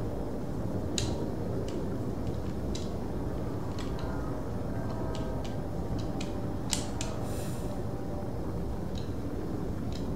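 Soft electronic menu clicks sound now and then.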